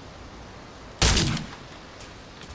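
A single loud gunshot cracks.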